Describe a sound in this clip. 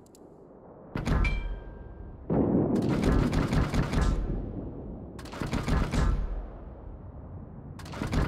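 Heavy guns fire with loud, deep booms that rumble away.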